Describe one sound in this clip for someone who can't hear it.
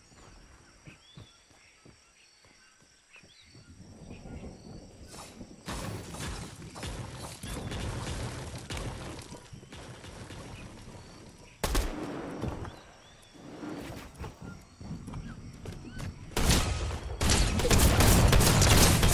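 A pickaxe strikes wood.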